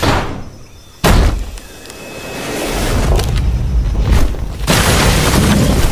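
A large creature crashes and thuds against a wooden wall.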